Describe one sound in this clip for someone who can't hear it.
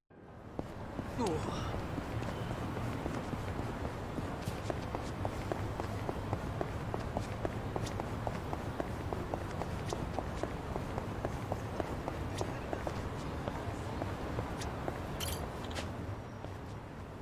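Footsteps run quickly and steadily on pavement.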